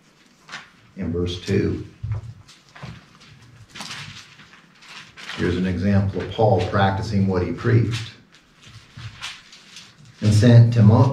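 A middle-aged man speaks calmly into a microphone close by.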